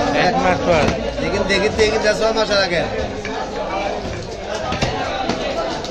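A cleaver chops down onto a wooden block with dull thuds.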